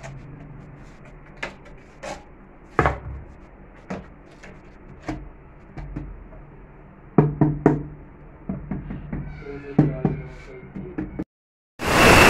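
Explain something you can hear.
A trowel scrapes and taps on wet mortar and tile.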